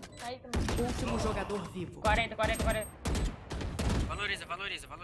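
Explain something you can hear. Gunshots fire rapidly.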